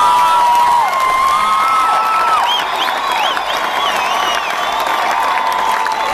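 A large crowd cheers loudly close by.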